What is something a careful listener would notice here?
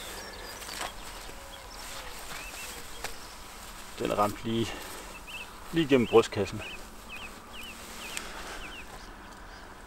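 Feathers rustle as a dead bird is handled and lifted.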